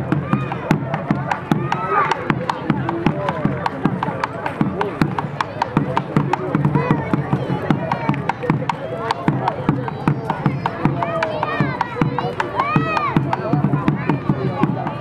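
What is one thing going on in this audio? Shoes tap and scuff on paving.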